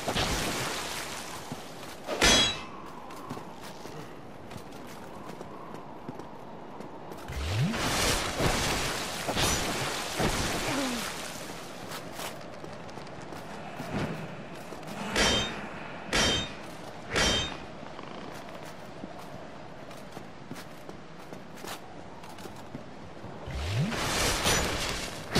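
Armoured footsteps crunch on gravel.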